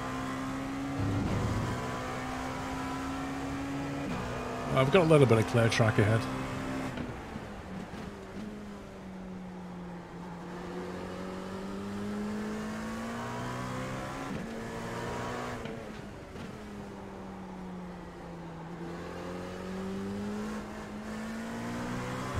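A racing car engine roars steadily, its pitch rising and falling with gear changes.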